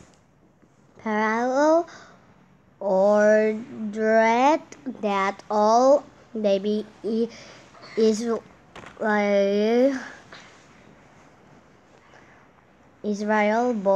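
A young girl reads out slowly over an online call.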